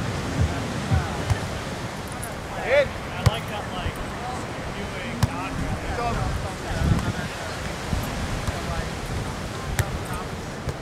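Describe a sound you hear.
Young people shout and call out during a game outdoors.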